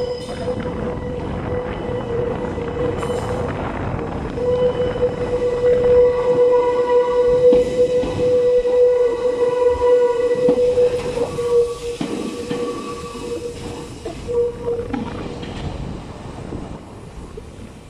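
An electric train rolls in close by and slowly comes to a stop.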